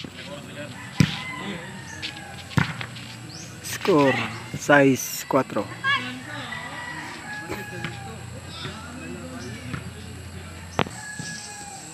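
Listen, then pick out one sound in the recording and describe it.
A ball is struck with a sharp slap.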